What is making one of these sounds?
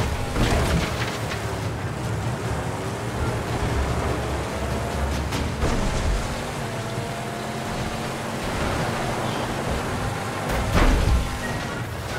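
Tyres crunch over rough sand.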